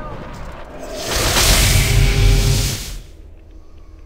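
A magic spell bursts with a loud, rushing shimmer.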